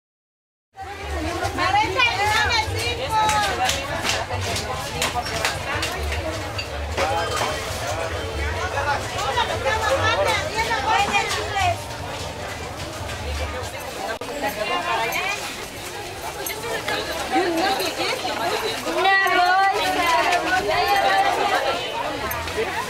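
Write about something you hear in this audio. A crowd of men and women chatter all around, close by and at a distance.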